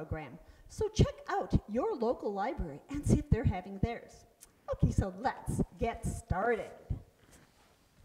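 A woman speaks with animation into a microphone.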